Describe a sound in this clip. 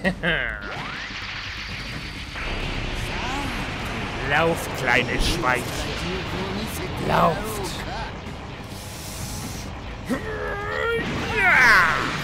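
A rushing energy blast roars as a character flies upward.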